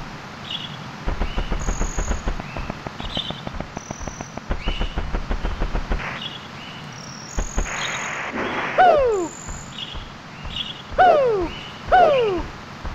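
Quick footsteps patter rapidly on a path.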